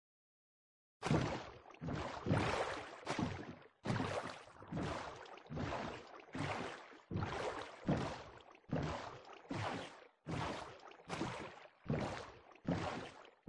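A boat paddles through water with rhythmic splashing.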